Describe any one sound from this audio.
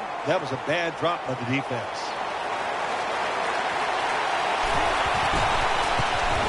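A large stadium crowd roars steadily, slowly growing louder.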